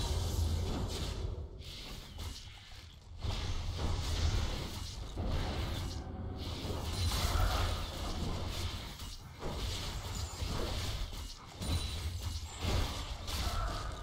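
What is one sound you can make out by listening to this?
Magic spells whoosh and crackle during a hectic video game battle.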